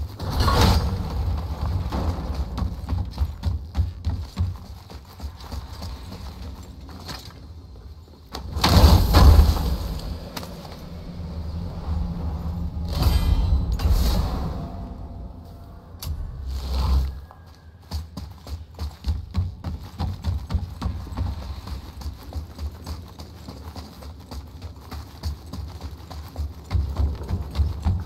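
Heavy footsteps thud quickly across wooden planks and snow.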